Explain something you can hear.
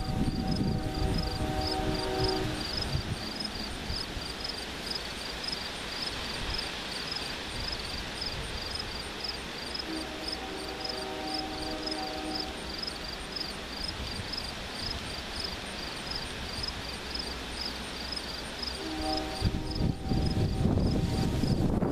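A diesel locomotive rumbles as it approaches.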